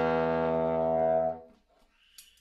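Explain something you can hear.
A horn plays a loud held note close by.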